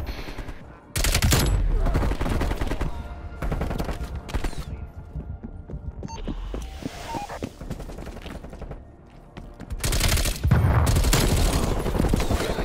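Rapid gunfire bursts loudly in repeated bursts.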